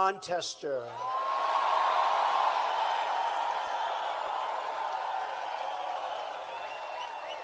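A large crowd cheers and chants.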